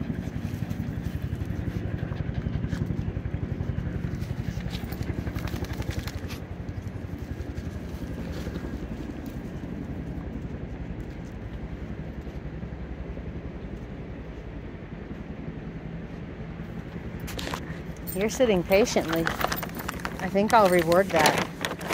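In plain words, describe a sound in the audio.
A puppy pants quickly.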